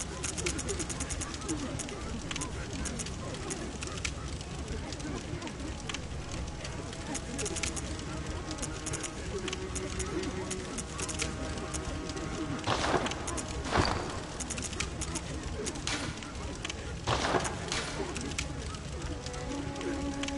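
Soft menu clicks tick quickly as selections change.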